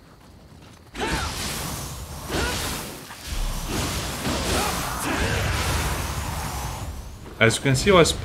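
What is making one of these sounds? Sparks crackle and hiss in a burst.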